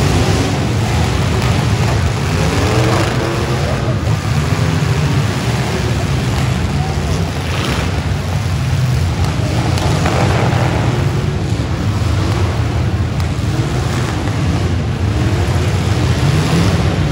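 Car engines rumble and roar loudly in a large echoing arena.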